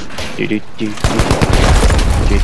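A loud explosion bursts nearby, followed by crackling debris.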